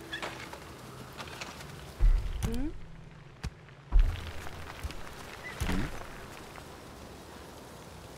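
A game menu clicks open.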